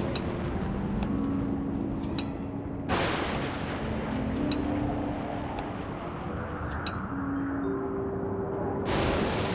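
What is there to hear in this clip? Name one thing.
Steam hisses softly and steadily.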